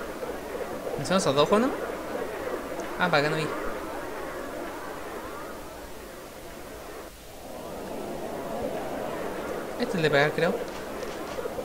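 A young man speaks briefly and animatedly into a microphone, close by.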